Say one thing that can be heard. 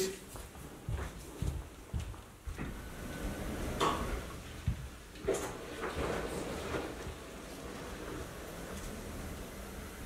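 Footsteps walk away across a hard floor.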